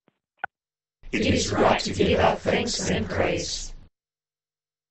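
A group of men and women respond together over an online call.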